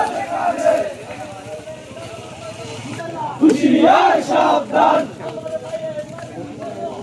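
A crowd of men talk and call out nearby outdoors at night.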